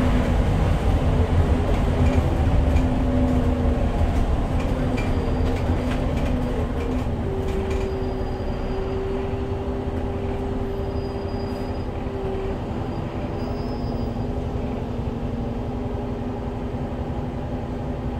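A bus engine hums and whines steadily as the bus drives along.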